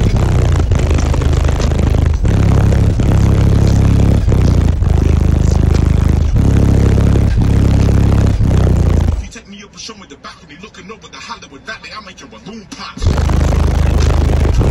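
Loud bass-heavy music booms from speakers with a pulsing beat.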